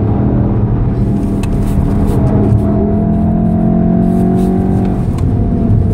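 A car engine roars loudly at high revs, rising in pitch as the car accelerates.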